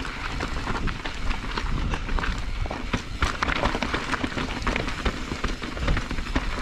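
A bike's chain and frame clatter over bumps.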